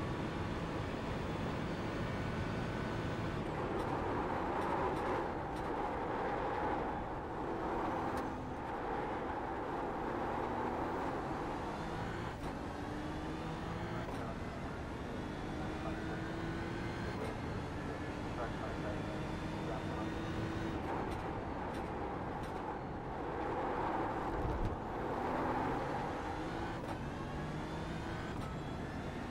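A racing car engine roars, rising and falling in pitch as it revs up and brakes through the gears.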